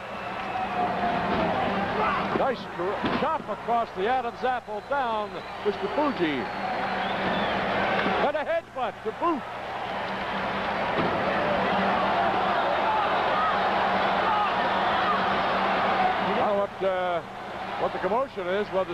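A large crowd cheers and roars in a big echoing hall.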